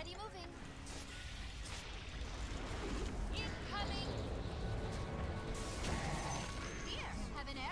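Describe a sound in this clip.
Fiery spell blasts roar and crackle in a fast-paced fight.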